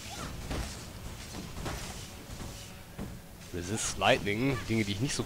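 Magic spells crackle and whoosh in quick bursts.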